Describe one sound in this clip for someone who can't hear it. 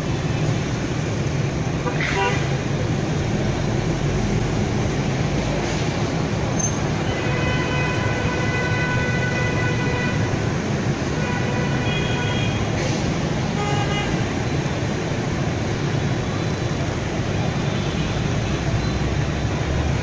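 Motorbike engines hum and buzz steadily as heavy traffic passes below.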